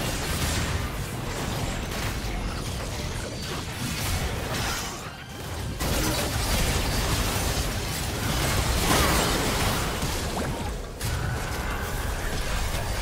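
Magic blasts and weapon hits crackle and thump in a busy fight.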